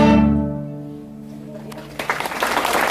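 A string orchestra holds a final chord that rings out and fades.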